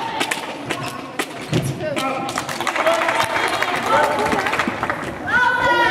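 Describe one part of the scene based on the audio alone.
Players' feet thud as they run across the hall.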